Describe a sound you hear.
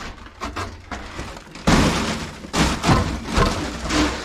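A hand pats a wooden board.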